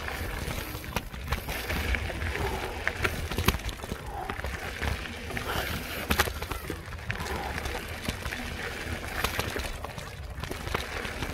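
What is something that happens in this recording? A mountain bike rattles and clatters over bumps in the trail.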